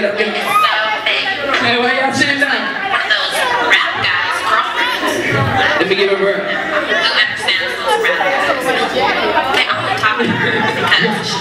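A crowd of men and women chatters and calls out in a large hall.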